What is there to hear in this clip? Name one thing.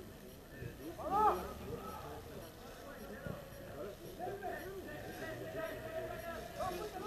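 Young men shout across an open field in the distance.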